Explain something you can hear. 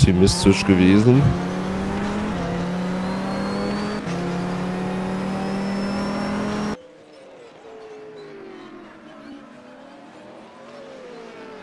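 A racing car engine roars at high, steady revs, then drops to a quieter, more distant drone.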